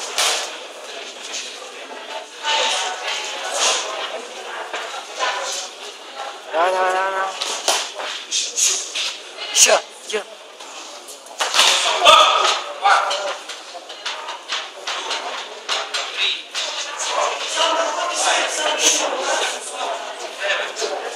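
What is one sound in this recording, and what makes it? Spectators shout and cheer throughout in an echoing hall.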